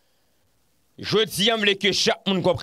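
A man speaks close to a microphone with animation.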